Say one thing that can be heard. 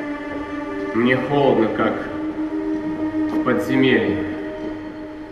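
A man sings in a large echoing hall.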